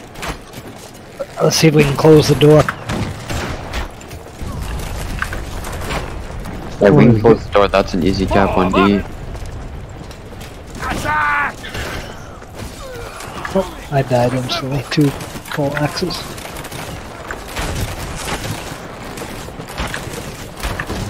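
Swords and shields clash and clang in a busy battle.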